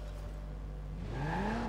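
A car engine starts and revs up.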